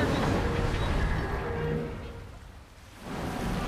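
Water splashes and sloshes as someone wades through it.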